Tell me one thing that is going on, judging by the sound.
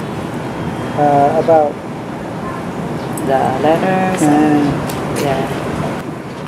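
A woman speaks calmly nearby.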